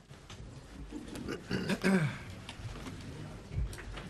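Adult men and women murmur quietly in a large room.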